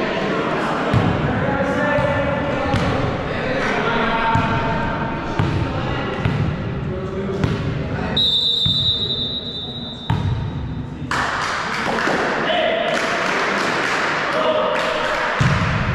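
A volleyball is struck hard by hand in an echoing hall.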